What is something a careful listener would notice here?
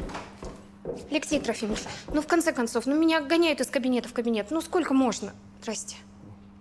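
A woman speaks anxiously nearby.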